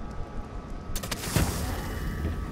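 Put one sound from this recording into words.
A sharp magical whoosh rushes past.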